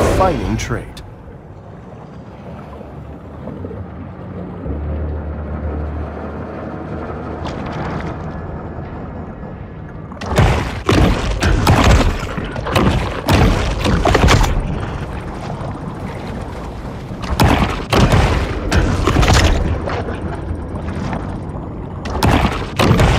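A deep underwater rumble drones steadily.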